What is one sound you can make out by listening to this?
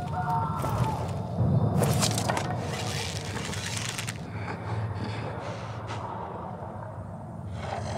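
A bowstring creaks as a bow is drawn.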